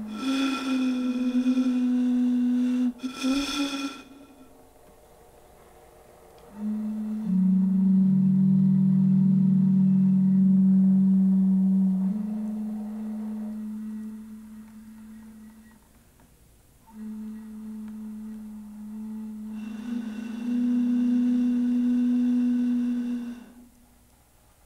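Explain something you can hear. A man blows across the mouths of plastic bottles into a microphone, sounding hollow hooting tones.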